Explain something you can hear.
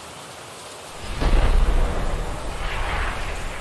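A deep rushing whoosh swells as a man dives through the air.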